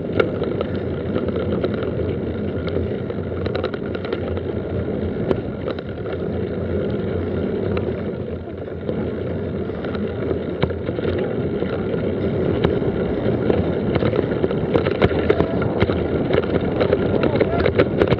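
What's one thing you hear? A mountain bike rattles and clatters over bumps.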